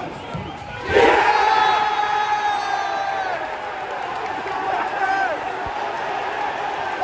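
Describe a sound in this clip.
A stadium crowd cheers loudly in a sudden burst.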